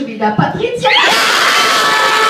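A crowd cheers loudly all around.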